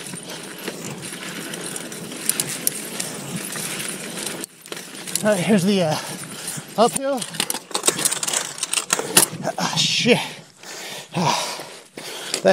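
Bike tyres rattle and crunch over a dirt trail.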